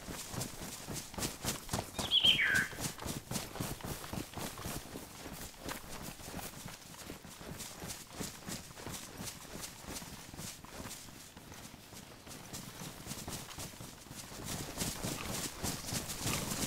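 Footsteps crunch through dry fallen leaves at a steady pace.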